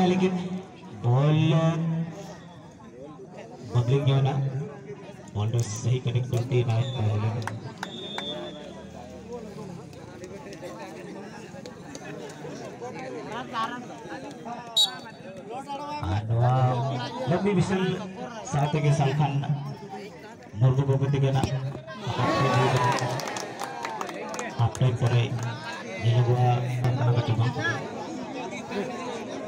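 A young man talks loudly and with animation close by.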